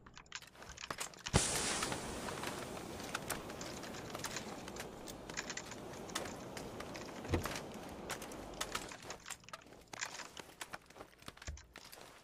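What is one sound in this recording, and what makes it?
Footsteps thud on a hard floor indoors.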